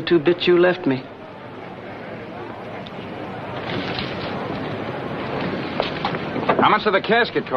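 A crowd murmurs in the background outdoors.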